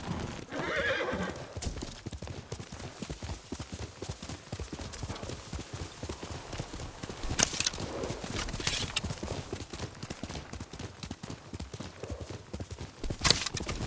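A horse gallops, its hooves thudding steadily on soft ground.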